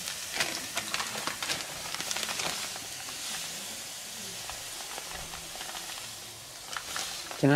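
Sugar pours with a soft hiss into a metal pot.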